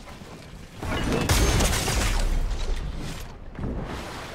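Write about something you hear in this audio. A magical blast whooshes and crackles loudly.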